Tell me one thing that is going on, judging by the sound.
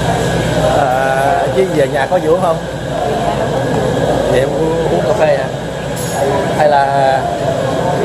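A woman speaks briefly close to the microphone.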